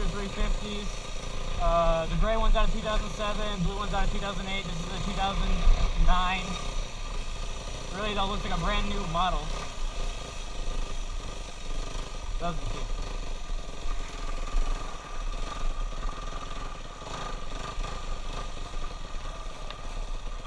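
A dirt bike engine hums and revs up and down close by.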